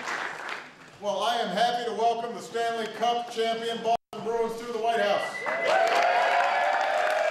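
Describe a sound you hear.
A man speaks calmly into a microphone in a large room.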